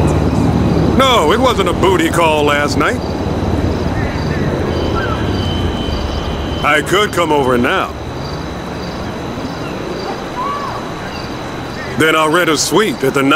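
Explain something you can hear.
A man talks calmly in short bursts, close by.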